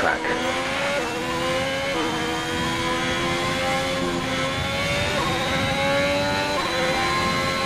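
A racing car engine briefly drops in pitch at each gear change.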